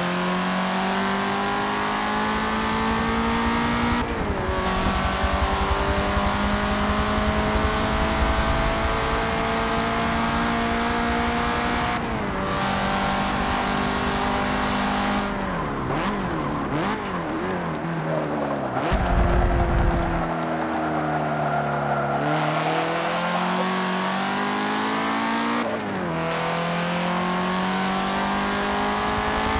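A race car engine roars and revs, rising through the gears and dropping sharply as it brakes.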